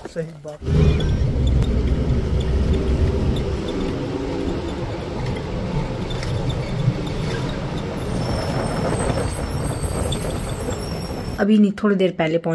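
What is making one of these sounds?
A vehicle rumbles steadily while driving.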